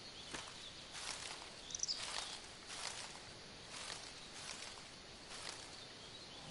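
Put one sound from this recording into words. Leaves rustle as plants are pulled by hand.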